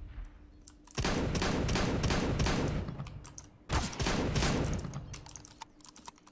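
Gunfire rings out in quick bursts.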